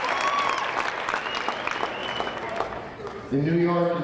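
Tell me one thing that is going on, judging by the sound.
A large crowd claps in an echoing hall.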